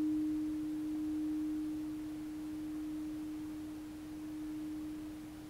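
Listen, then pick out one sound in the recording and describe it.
A crystal singing bowl rings with a steady hum that slowly fades.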